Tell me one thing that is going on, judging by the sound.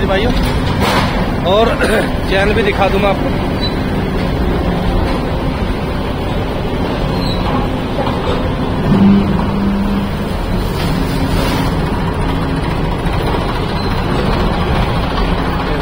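Tractor engines rumble steadily outdoors.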